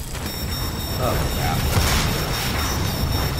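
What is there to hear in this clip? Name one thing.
Monsters growl nearby.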